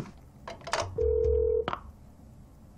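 A telephone gives a short steady beep.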